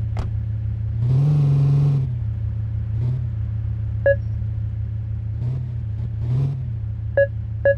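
A car engine revs up briefly.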